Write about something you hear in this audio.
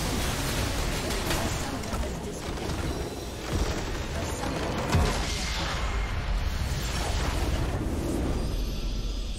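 Magic spells crackle and whoosh in quick, noisy bursts.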